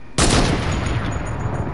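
A sniper rifle fires a single shot in a game.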